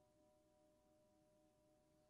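A saxophone plays softly.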